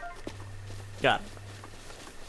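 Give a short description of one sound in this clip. A short chime sounds.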